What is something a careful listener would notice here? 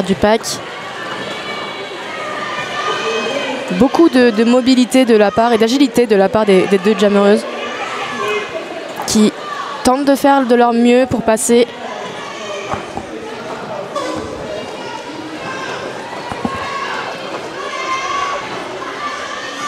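Roller skate wheels roll and scrape on a hard floor.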